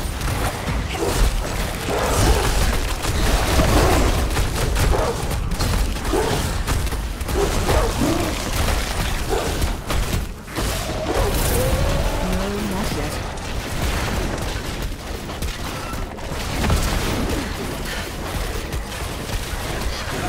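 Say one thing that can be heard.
Magic spells crackle and blast in a fight with a huge monster.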